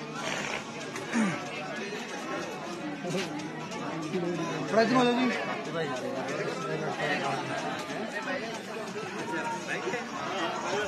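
A young man speaks with animation into a microphone, heard through a loudspeaker.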